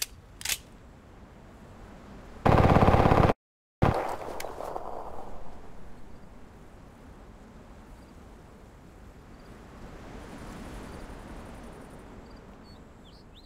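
Footsteps crunch on grass and concrete.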